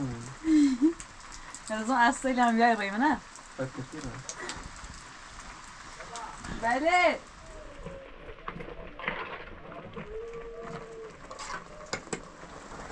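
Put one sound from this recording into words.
A small wood fire crackles.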